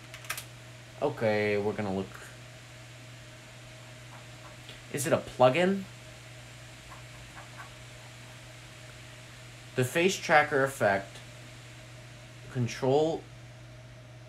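A young man speaks calmly, close by, in short bursts.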